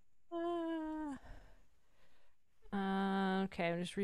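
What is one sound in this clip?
A man laughs heartily over an online call.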